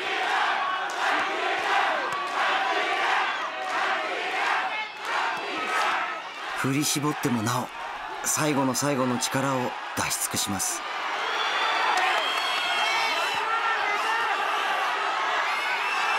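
A crowd cheers and shouts in a large hall.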